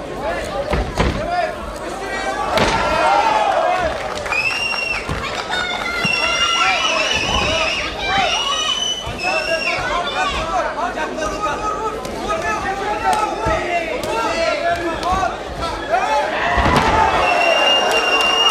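Fighters' bodies thud onto a padded floor.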